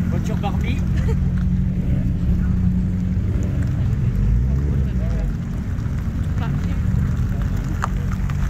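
Car engines idle and rumble nearby.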